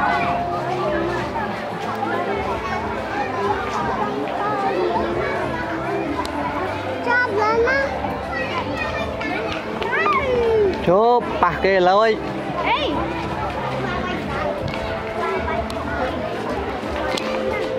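Many children chatter and call out nearby, outdoors.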